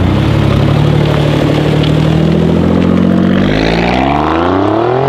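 A twin-turbo V6 sports sedan accelerates hard past, its exhaust roaring as the engine pitch climbs.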